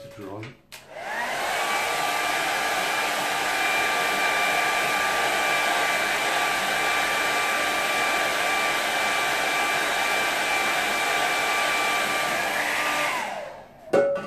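A hair dryer blows with a steady whirring roar.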